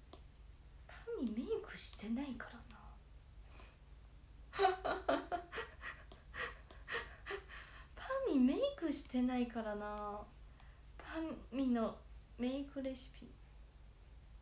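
A young woman speaks softly and calmly close by.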